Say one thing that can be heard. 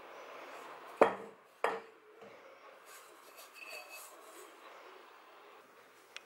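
Dough is tipped out of a glass bowl with a soft thud.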